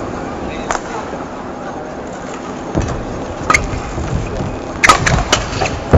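Badminton rackets strike a shuttlecock back and forth in a rally.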